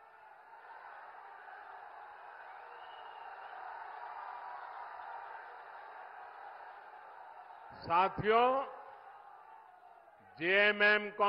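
A large crowd cheers and chants outdoors.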